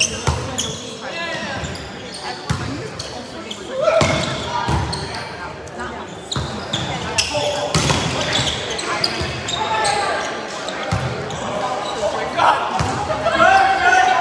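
Young men and women call out to each other across an echoing hall.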